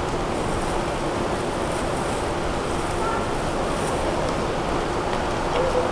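Footsteps tap on paving as two people walk past.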